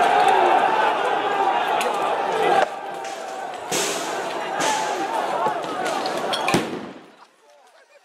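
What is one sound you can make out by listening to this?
A large crowd shouts and roars outdoors.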